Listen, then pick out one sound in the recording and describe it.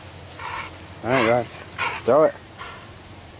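A dog whines in high yelps.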